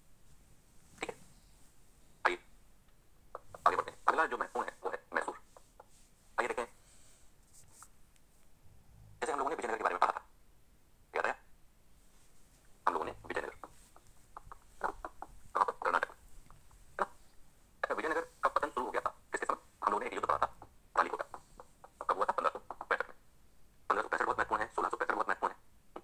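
A middle-aged man lectures with animation, heard through a phone's speaker.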